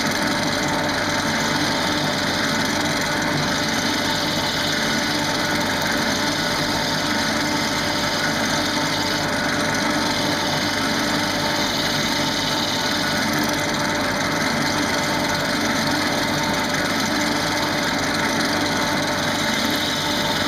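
A chisel scrapes and hisses against spinning wood.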